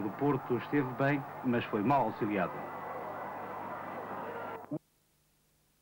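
A stadium crowd murmurs in a steady roar.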